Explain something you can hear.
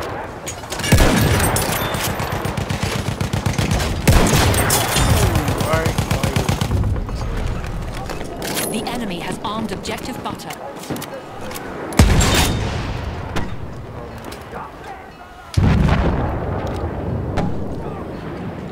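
Heavy explosions boom nearby and rumble away.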